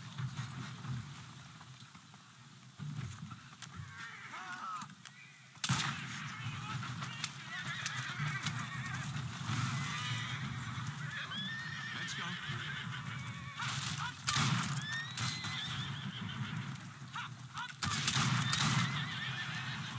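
Horse hooves clop on a paved street.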